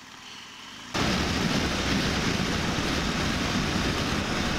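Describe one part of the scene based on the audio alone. Wind rushes loudly past at speed.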